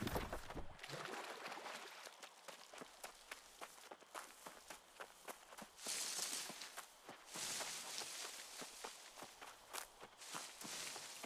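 Footsteps rustle through grass and bushes.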